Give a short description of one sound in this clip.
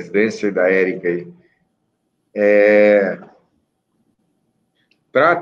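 A middle-aged man reads out slowly in short phrases over an online call.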